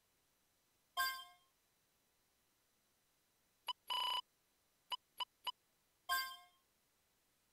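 Short electronic menu blips and chimes sound a few times.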